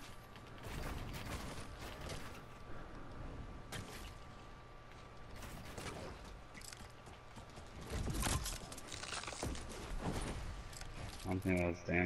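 Wooden walls are built with quick knocking thuds.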